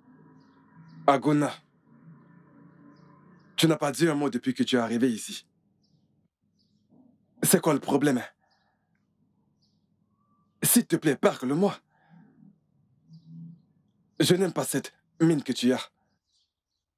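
A man speaks pleadingly, close by.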